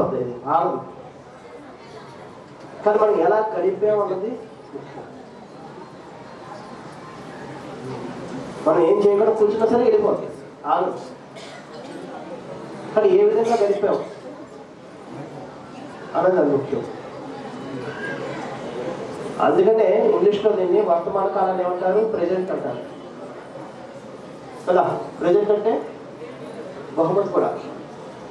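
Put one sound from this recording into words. A man speaks calmly into a microphone, heard through a loudspeaker, in short phrases with pauses.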